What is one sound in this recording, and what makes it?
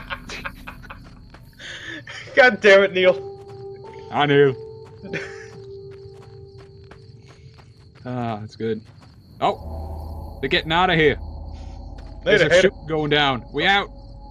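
Footsteps crunch over dry gravelly ground.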